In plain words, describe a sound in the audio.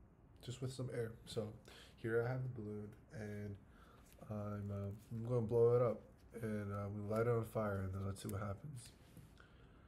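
A young man talks calmly and close up.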